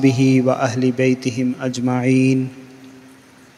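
A man chants through a microphone in a steady, drawn-out voice.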